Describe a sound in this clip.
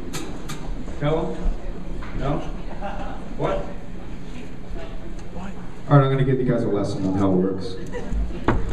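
A man speaks through a microphone over loudspeakers in a large hall.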